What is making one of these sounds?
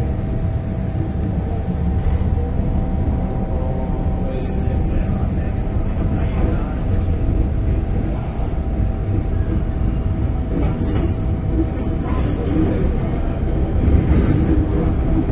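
A train's motor hums with a steady whine.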